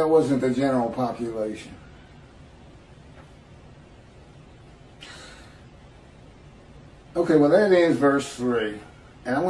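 A middle-aged man speaks calmly into a microphone, heard as if over an online call.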